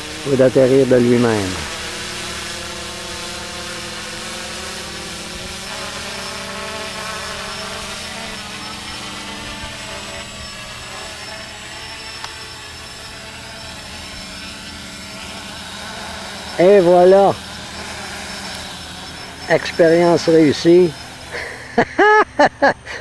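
A small drone's propellers buzz steadily, shifting in pitch as the drone flies.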